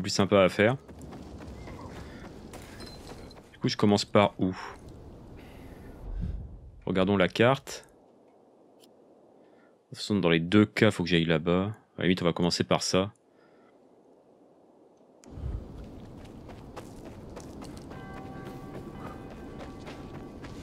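Footsteps walk on stone paving outdoors.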